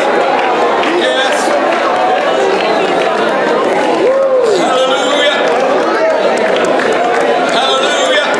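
A crowd sings along together.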